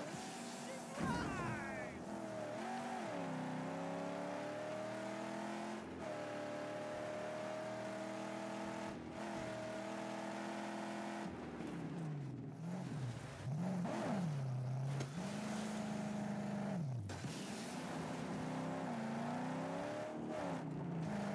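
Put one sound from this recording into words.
Tyres skid and scrape on loose gravel.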